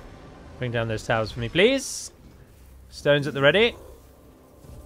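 A magical spell whooshes and shimmers.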